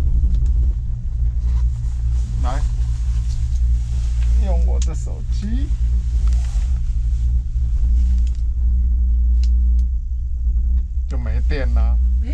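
A chairlift creaks and clatters as it moves along its cable.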